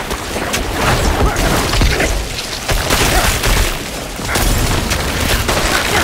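Magic blasts burst and crackle.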